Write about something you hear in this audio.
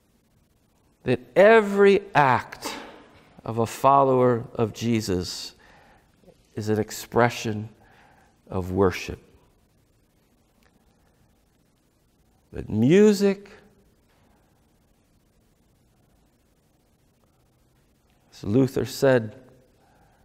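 A middle-aged man speaks calmly and expressively through a clip-on microphone, with long pauses.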